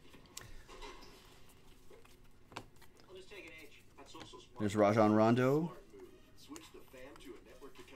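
Trading cards flick and slide against each other.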